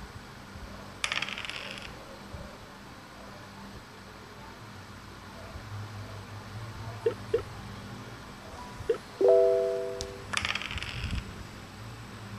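Dice rattle as they roll.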